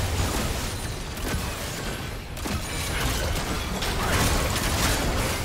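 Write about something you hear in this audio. Game spells and attacks crackle and burst in quick succession.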